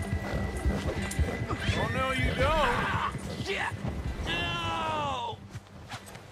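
Horse hooves thud through deep snow at a gallop.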